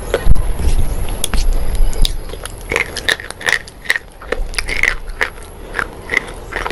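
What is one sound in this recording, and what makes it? A woman chews with wet, crackling mouth sounds close to a microphone.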